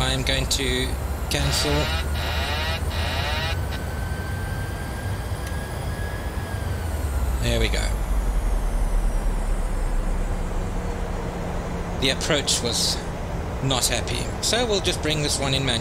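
Jet engines drone steadily in the background.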